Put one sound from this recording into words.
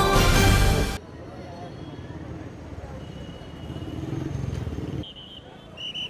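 Car engines hum as traffic drives along a street.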